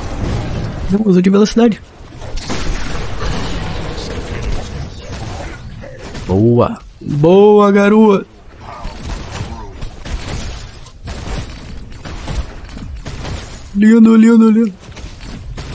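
An adult man talks into a microphone.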